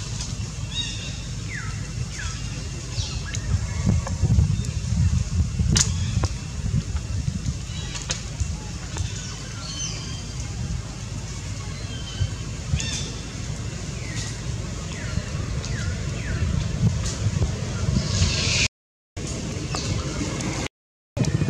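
A monkey rustles through grass as it walks.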